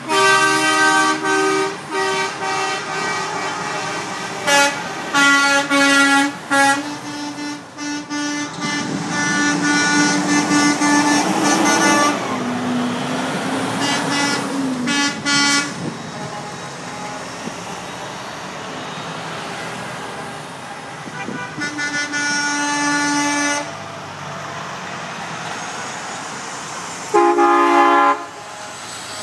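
Heavy truck engines rumble loudly as the trucks drive past one after another.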